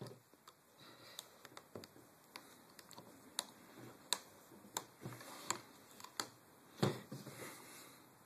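Small metal parts click and tap as they are fitted together.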